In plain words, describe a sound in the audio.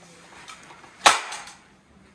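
A rifle's mechanism snaps sharply.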